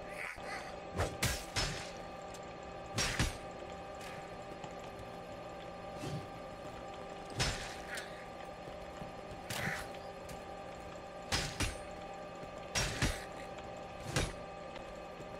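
Weapon blows land with sharp thuds.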